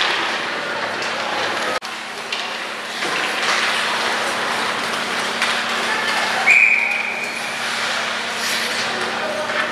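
Skate blades scrape and hiss on ice.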